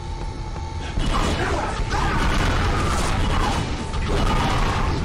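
Energy weapons fire in rapid, crackling bursts, with echoing blasts.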